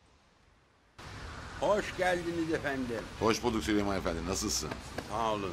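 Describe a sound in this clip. Two men talk with animation outdoors.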